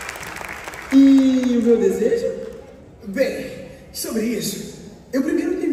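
A man speaks loudly and dramatically in a large hall.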